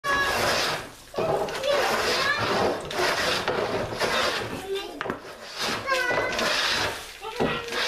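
A hand plane scrapes along wood in repeated strokes.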